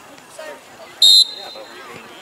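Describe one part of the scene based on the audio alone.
A referee's whistle blows once, sharp and short.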